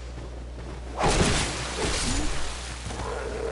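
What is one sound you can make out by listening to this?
Metal weapons clash in a fight.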